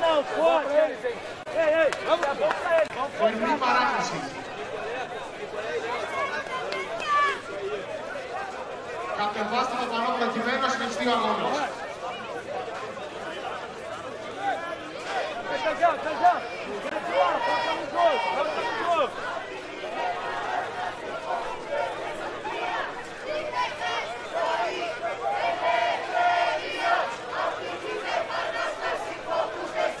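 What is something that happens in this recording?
A crowd murmurs and cheers.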